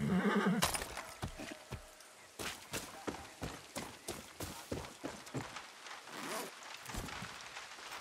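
Footsteps crunch steadily on dirt and wooden boards.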